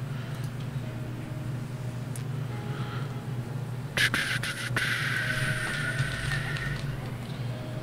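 A man talks calmly and close into a microphone.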